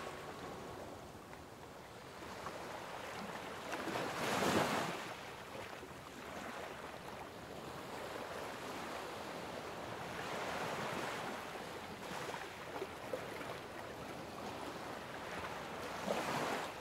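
Small waves wash and swish onto a stony shore.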